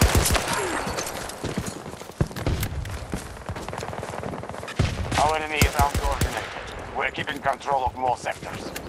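Gunshots crack in sharp, scattered bursts.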